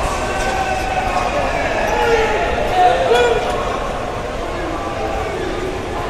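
A crowd of young men talks and murmurs nearby in an echoing room.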